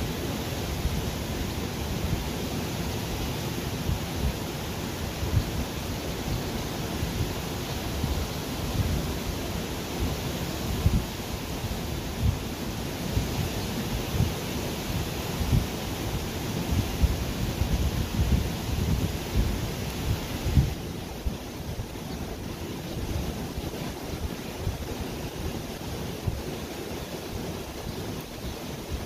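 A swollen river rushes and churns steadily.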